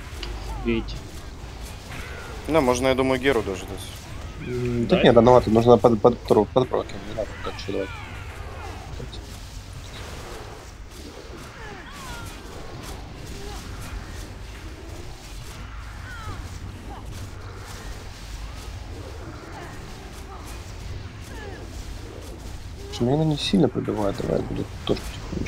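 Magic spells crackle and whoosh in a fantasy battle.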